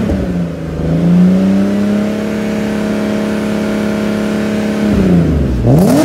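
A car engine holds a steady high rev for a few seconds.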